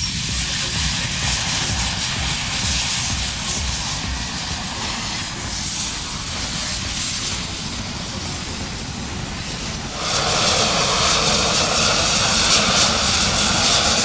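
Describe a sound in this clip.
A gas flare roars loudly outdoors, growing louder.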